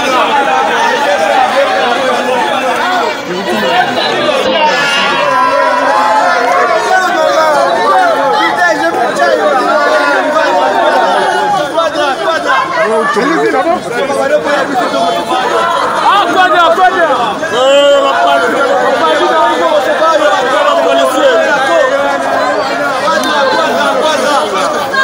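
A crowd of men and women shout and cheer excitedly close by.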